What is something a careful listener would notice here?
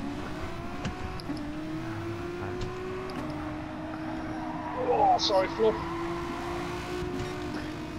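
A racing car engine drones steadily, shifting pitch as gears change.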